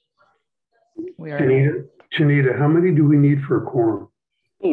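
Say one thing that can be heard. An older man speaks with animation over an online call.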